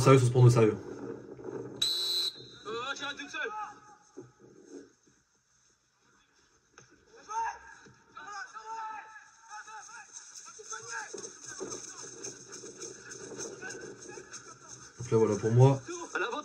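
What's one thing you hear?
A man talks calmly and close into a microphone.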